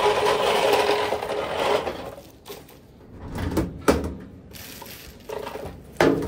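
A plastic bin bag rustles and crinkles.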